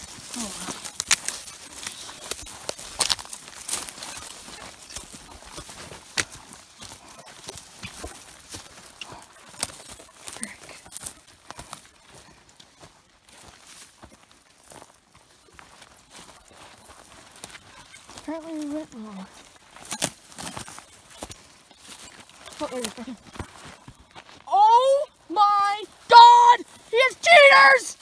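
Footsteps crunch through dry brush and twigs.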